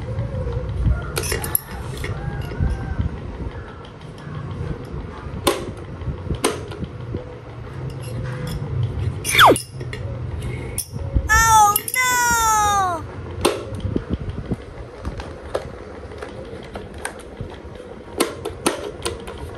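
Switch buttons click as they are pressed.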